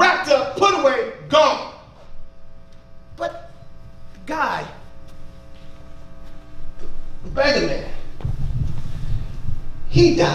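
A man preaches with animation into a microphone through loudspeakers in an echoing hall.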